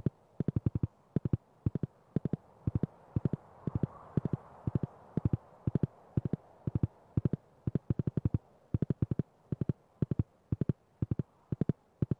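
Horse hooves clop quickly and rhythmically on snow.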